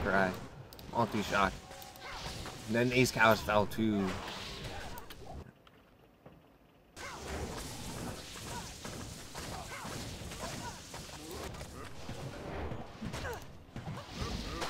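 Magic spells crackle and burst in rapid bursts.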